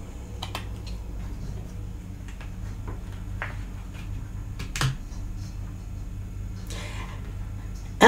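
Cards shuffle and slide on a table with soft clicks.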